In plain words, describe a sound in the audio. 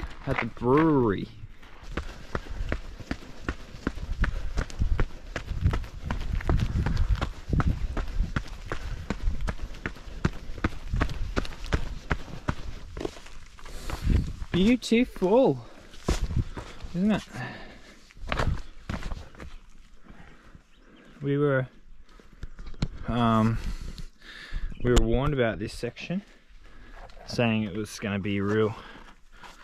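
A man speaks close by, out of breath.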